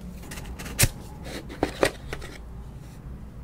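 Cardboard box parts knock and tap together.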